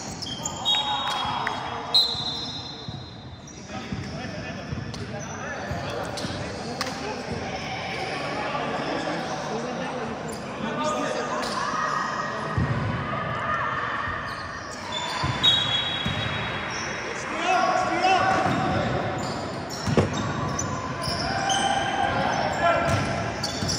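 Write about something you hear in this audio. Young men shout and call out to each other across a large echoing hall.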